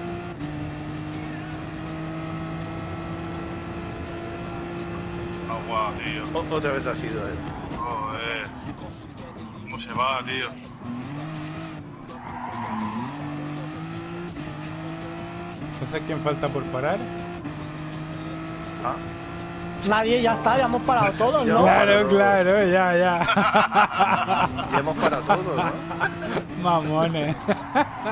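A racing car engine roars steadily, rising in pitch as it speeds up and dropping with each gear change.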